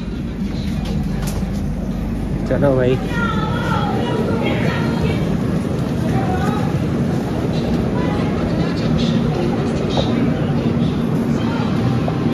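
A crowd murmurs steadily.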